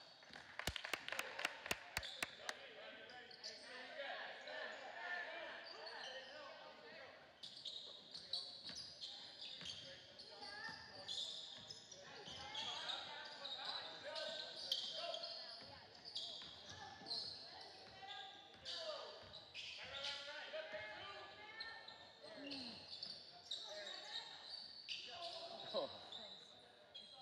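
A crowd of spectators talks and calls out in a large echoing gym.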